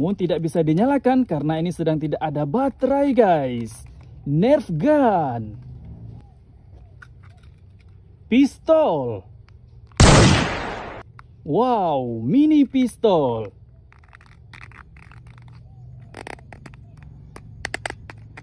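Plastic toy guns click and rattle in someone's hands.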